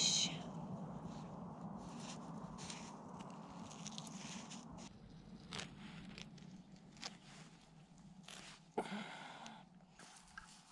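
Hands rustle and scrape through dry grass and damp soil.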